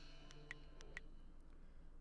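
Short menu clicks sound.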